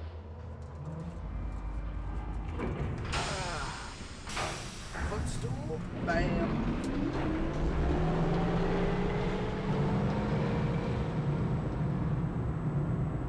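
A heavy lift rumbles and clanks as it descends.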